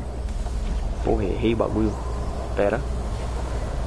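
A young man speaks briefly and calmly into a close microphone.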